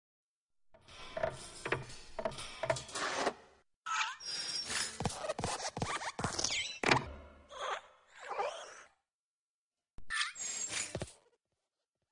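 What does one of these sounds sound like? A small lamp hops and thumps in quick bounces.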